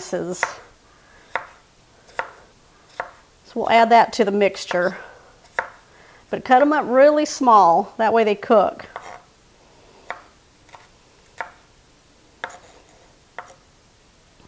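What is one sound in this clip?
A knife chops on a wooden board with sharp, spaced knocks.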